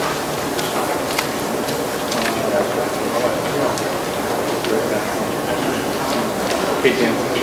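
A crowd of men and women murmurs and chatters in a large room.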